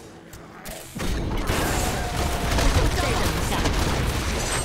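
Magic strikes hit with sharp impacts.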